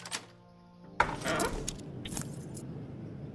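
A lock springs open with a loud metallic clunk.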